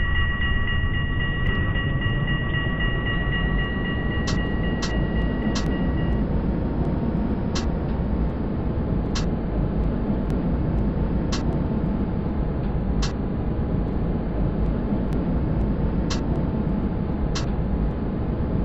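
Tram wheels rumble steadily along the rails.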